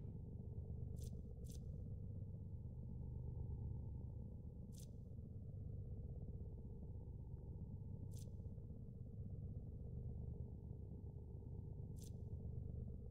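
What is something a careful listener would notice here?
Short interface clicks sound as menu items are selected.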